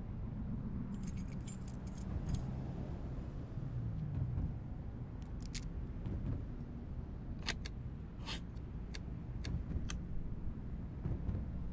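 Small metal clasps click on a wooden box.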